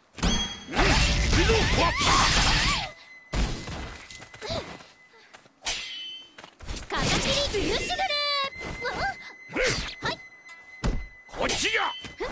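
Swords clash and slash with sharp metallic hits.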